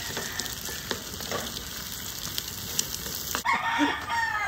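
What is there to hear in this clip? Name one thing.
Eggs sizzle loudly in hot oil.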